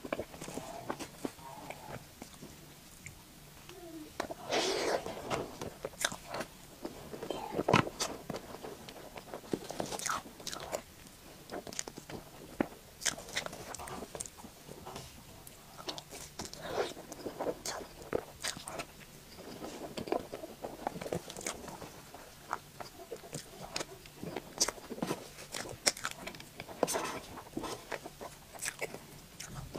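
A woman chews soft cake wetly close to a microphone.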